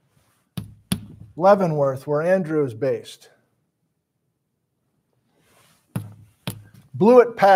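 Chalk taps and knocks on a board.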